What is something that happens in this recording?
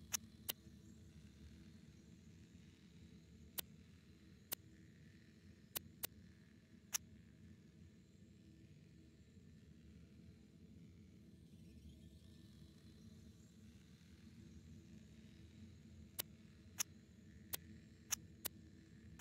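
Short, sharp menu clicks sound now and then as items are selected.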